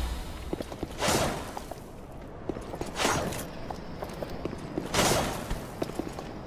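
A heavy body rolls across stone with a loud rush.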